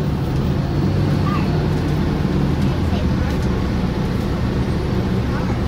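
A vehicle's engine rumbles low and steady from close by.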